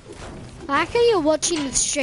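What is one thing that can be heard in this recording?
A pickaxe clangs against a metal truck.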